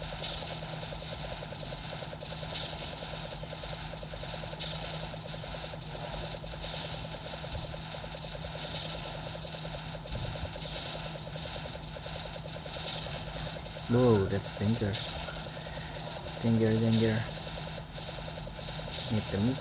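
Rapid electronic hit effects crackle constantly.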